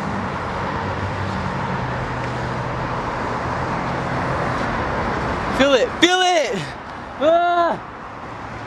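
Traffic rushes past steadily on a nearby road.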